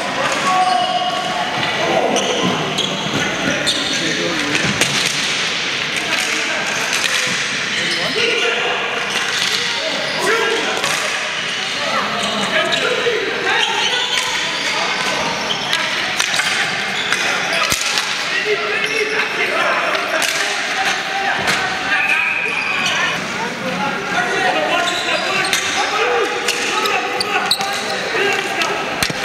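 Players shout and call out to each other across an echoing hall.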